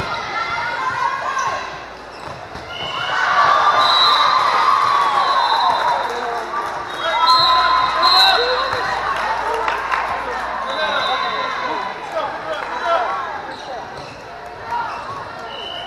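A crowd of spectators cheers and chatters in a large echoing hall.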